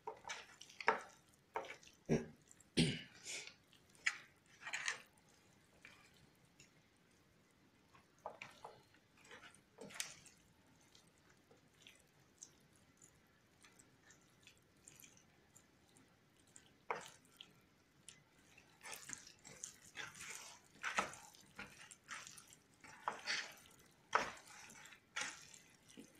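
Hands squelch and slap as they rub raw chicken pieces in a dish.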